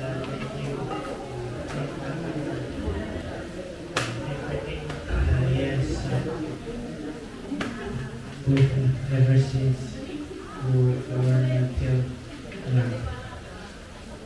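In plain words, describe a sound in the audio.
A man speaks into a microphone through loudspeakers, announcing with animation.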